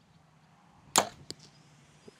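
A bowstring snaps sharply as an arrow is shot.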